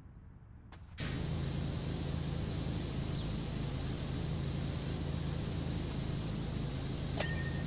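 A pressure washer sprays water with a steady, loud hiss.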